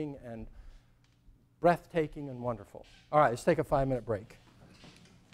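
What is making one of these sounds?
A middle-aged man speaks calmly to an audience in a room with a slight echo.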